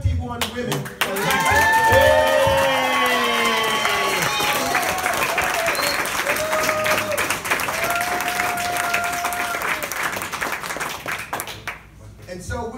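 People clap their hands in applause.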